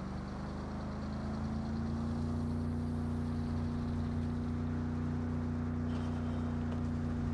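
Tyres hiss on the road surface.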